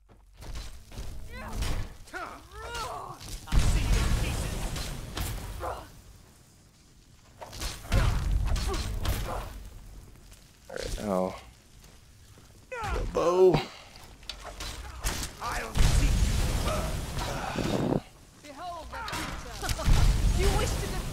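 A frost spell blasts out in loud rushing bursts.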